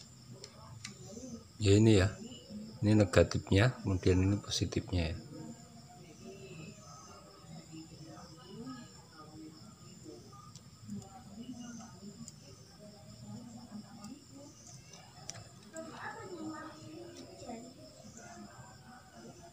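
Fingers fiddle with wires and plastic parts, rustling and clicking softly.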